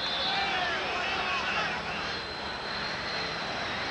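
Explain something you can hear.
A large stadium crowd murmurs and roars in the distance.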